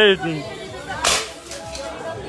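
A gun fires with a sharp pop.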